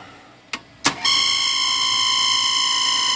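An electric motor starts up and hums steadily.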